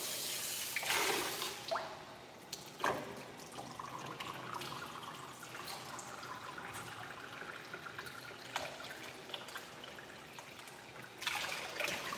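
Hands rub and squelch through a dog's wet fur.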